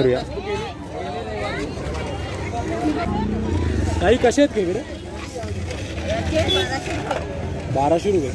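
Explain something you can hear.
Several women and men chatter and call out nearby in a busy outdoor crowd.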